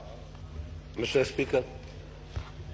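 A middle-aged man speaks briefly into a microphone.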